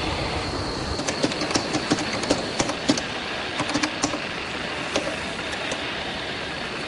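A typewriter clatters with quick, uneven key strikes.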